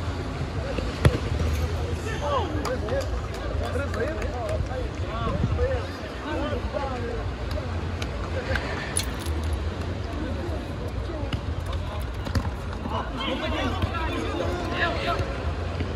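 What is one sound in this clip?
A ball is kicked with sharp thumps.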